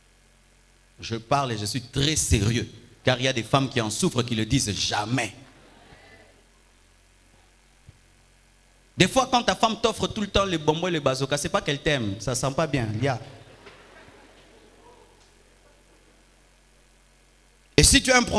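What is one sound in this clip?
A man preaches with animation into a microphone, in an echoing hall.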